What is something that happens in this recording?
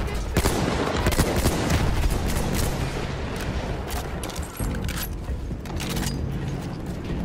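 Gunfire cracks and pops repeatedly nearby.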